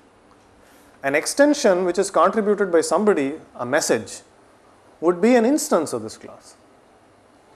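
A man lectures with animation through a clip-on microphone.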